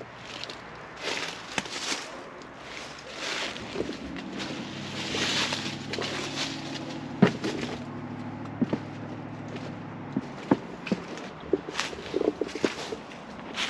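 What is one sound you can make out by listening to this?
Dry leaves crunch underfoot as someone walks outdoors.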